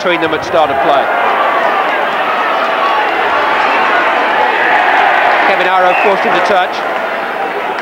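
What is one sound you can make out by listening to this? A large crowd roars and cheers outdoors.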